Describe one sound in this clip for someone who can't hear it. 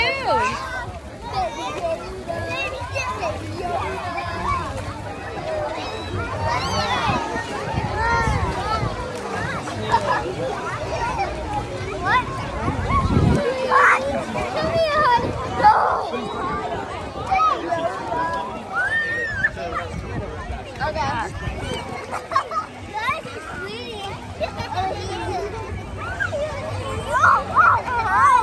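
Water splashes as children move about.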